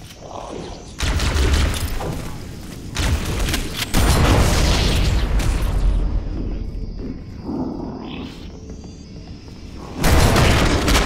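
Gunfire from a video game rattles in loud bursts.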